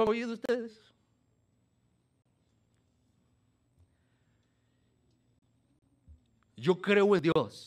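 An elderly man speaks slowly and with emphasis through a microphone, pausing at length.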